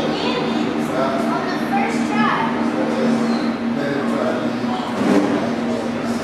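Men and women talk quietly nearby.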